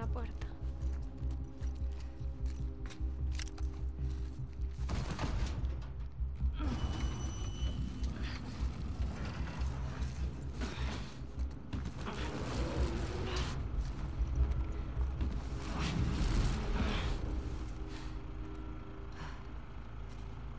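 Soft footsteps shuffle and creak across a hard floor.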